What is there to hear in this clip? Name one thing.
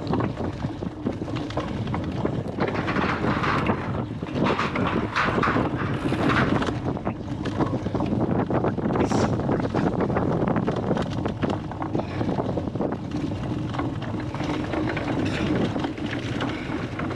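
Bicycle tyres rumble and rattle over bumpy grass and mud.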